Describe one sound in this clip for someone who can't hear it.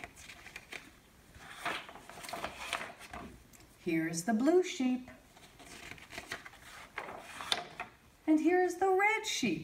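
Paper pages rustle as they are turned.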